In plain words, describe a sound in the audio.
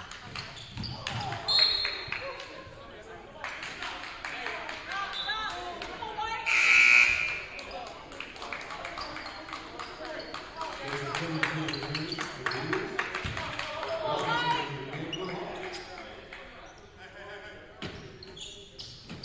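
Spectators murmur and shout in a large echoing gym.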